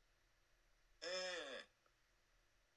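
A woman laughs loudly over an online call.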